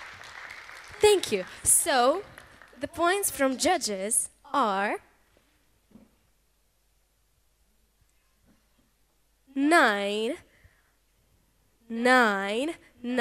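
A young woman speaks with animation through a microphone in a large hall.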